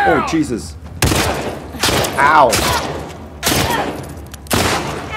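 A pistol fires loud shots that echo in a large room.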